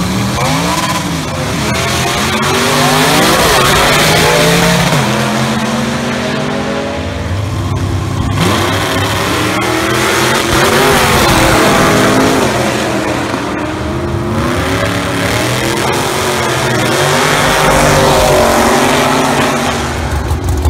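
Drag racing cars' engines roar loudly, revving up and down as the cars launch and speed away.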